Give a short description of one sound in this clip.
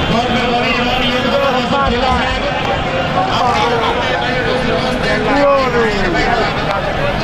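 A large outdoor crowd chatters and calls out loudly.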